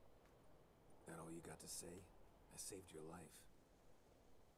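A man with a low, gruff voice answers calmly.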